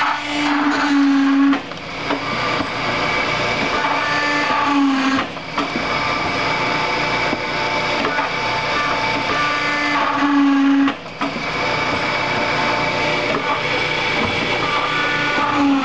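A machine whirs and rattles steadily.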